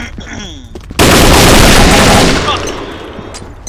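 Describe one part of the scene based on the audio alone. Gunfire rattles loudly in a rapid burst.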